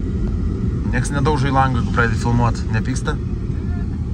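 A man outside calls out loudly near the car.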